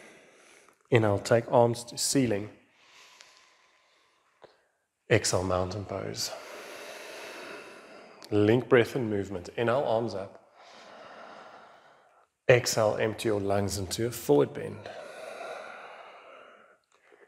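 A woman speaks calmly, giving slow instructions in a room with a slight echo.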